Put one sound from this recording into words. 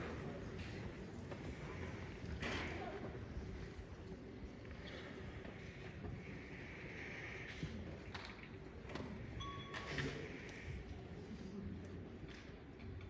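A school band plays softly in a large hall.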